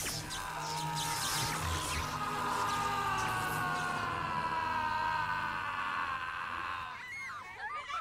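A woman screams loudly and at length.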